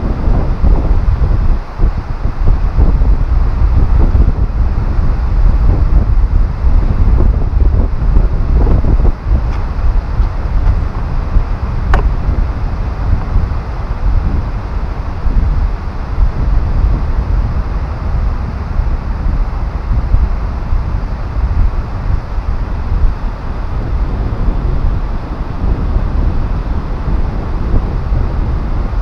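Strong wind roars and buffets loudly outdoors.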